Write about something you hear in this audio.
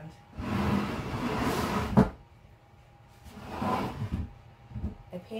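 A wooden board scrapes and slides across a surface.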